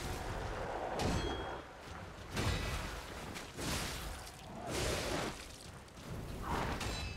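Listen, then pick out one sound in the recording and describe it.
Heavy blows thud and clang.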